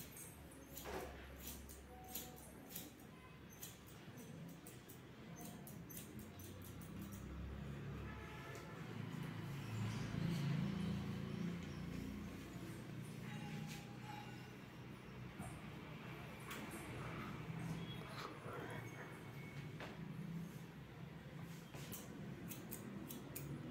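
Scissors snip through hair with short, crisp clicks.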